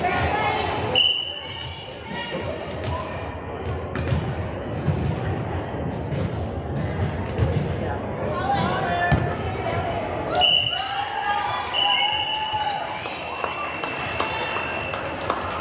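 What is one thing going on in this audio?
A referee blows a whistle in short sharp blasts.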